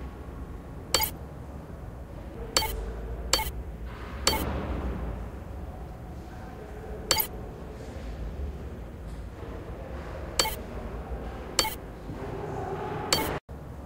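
Short, sharp menu clicks sound now and then.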